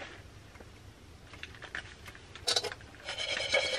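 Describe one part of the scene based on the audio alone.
A metal pot clanks on a stove.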